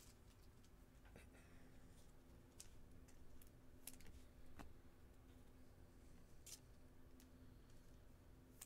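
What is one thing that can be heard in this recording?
Plastic card sleeves crinkle and rustle in hands.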